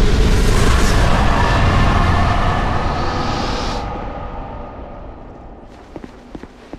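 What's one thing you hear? A magical spell crackles and hums loudly, then fades.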